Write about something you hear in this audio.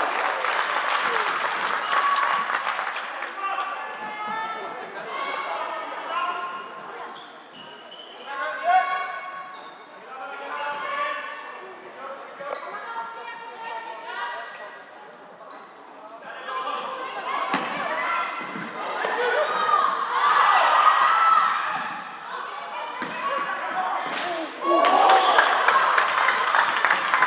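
Plastic sticks clack against a ball and each other.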